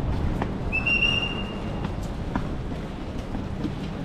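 A suitcase rattles as it rolls over cobblestones.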